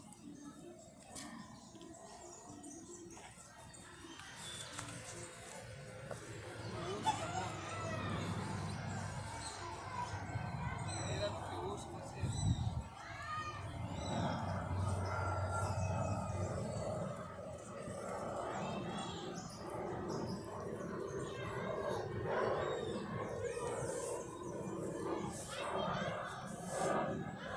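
A donkey tears and chews grass up close.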